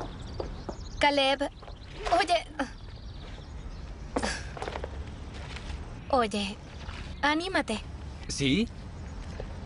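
A young woman speaks briefly outdoors.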